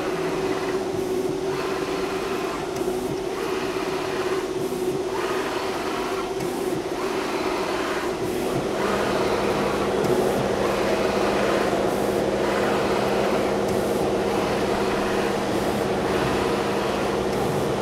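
A plotter's motor whirs steadily as its head slides back and forth in short, rhythmic bursts.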